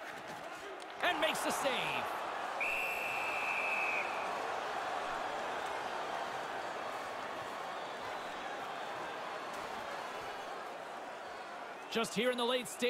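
A large arena crowd roars and cheers.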